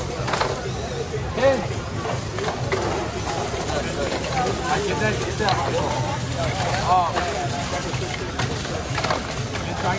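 Robots clatter and knock against plastic balls and walls.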